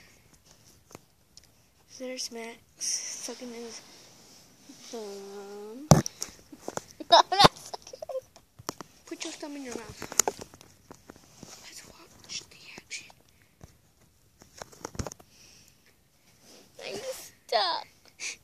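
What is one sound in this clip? A young boy giggles close to the microphone.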